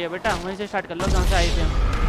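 A body hits rocks with a heavy thud.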